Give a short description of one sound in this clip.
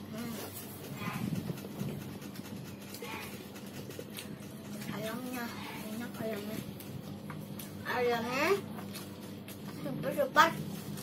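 A young girl chews food.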